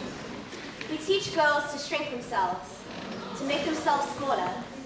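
A young girl speaks loudly to an audience in an echoing hall.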